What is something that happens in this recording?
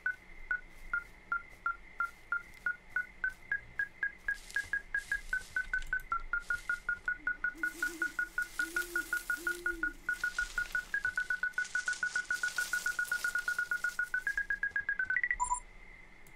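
A handheld detector beeps in short pulses that speed up.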